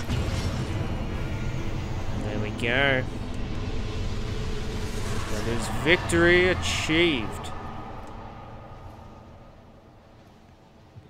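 A huge iron giant collapses with a heavy crash and a deep rumble that slowly fades.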